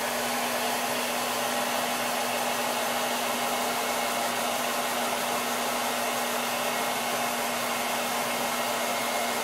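A hair dryer blows with a steady, loud whoosh and hum close by.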